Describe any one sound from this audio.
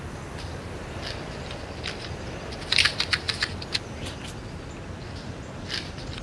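Hands open a small cardboard box with soft clicks and rustles.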